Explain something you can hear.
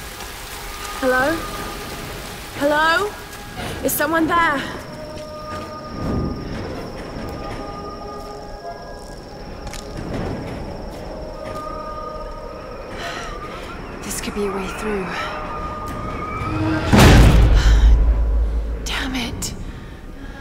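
A young woman calls out questioningly, close by.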